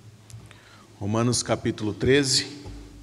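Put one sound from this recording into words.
A man speaks clearly into a microphone in a room with a slight echo.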